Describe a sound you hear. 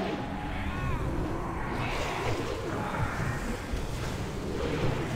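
Magic spells crackle and boom in a fierce battle.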